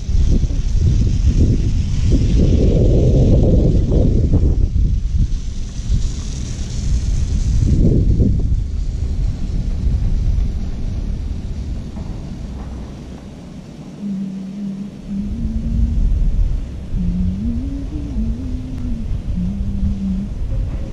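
Skis hiss over soft snow.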